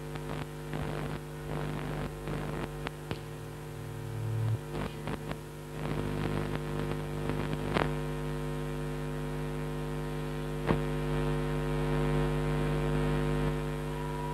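Loud music plays through loudspeakers.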